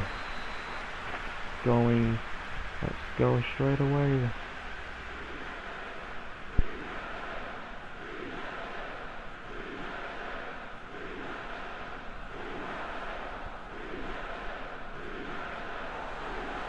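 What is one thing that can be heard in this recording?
A large crowd roars and murmurs steadily in a big stadium.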